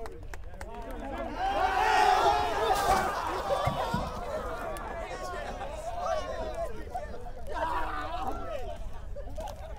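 A crowd of young men cheers and shouts loudly outdoors.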